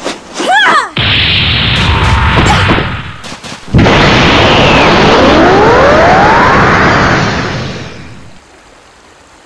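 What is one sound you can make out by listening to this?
A loud energy blast roars and surges, then fades away.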